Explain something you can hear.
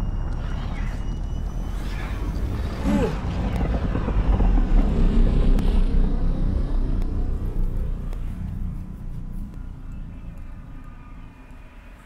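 A spaceship roars past overhead and fades away.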